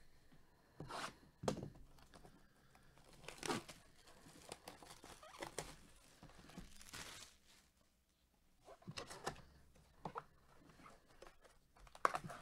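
Cardboard scrapes and taps as a box is handled and opened.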